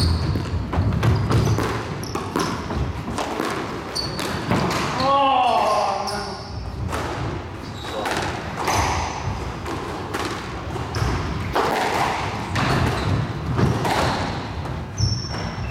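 A squash ball smacks sharply off rackets and walls in a large echoing court.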